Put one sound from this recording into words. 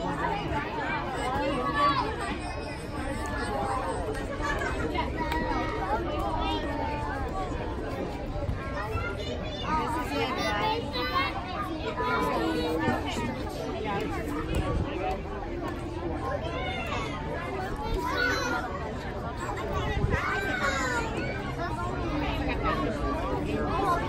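A crowd of children and adults chatters and calls out outdoors.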